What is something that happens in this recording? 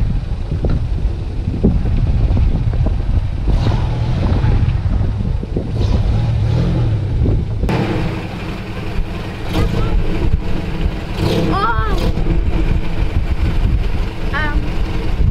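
An engine rumbles low and steadily.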